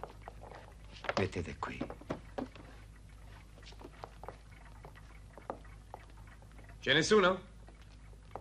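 A man speaks briefly in a raised voice.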